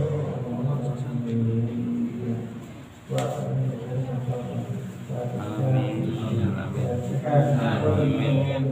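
A young man sings a slow, drawn-out chant into a microphone, pausing briefly for breath.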